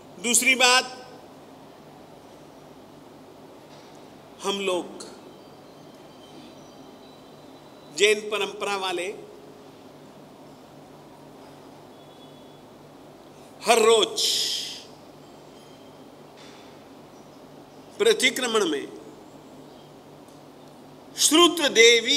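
An elderly man speaks into a microphone in short, spaced bursts, with long pauses between.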